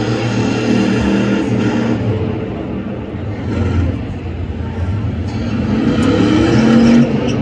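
Tyres screech as a car spins on the tarmac.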